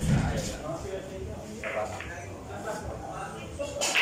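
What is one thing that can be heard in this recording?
Pool balls clack together sharply.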